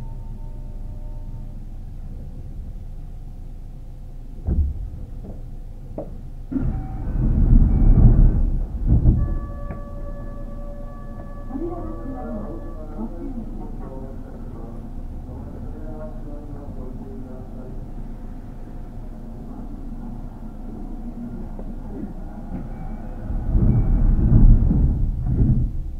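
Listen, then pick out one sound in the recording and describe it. A stopped electric train hums steadily nearby.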